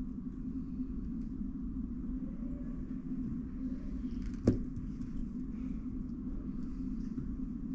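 A puzzle cube clicks softly as its layers are turned.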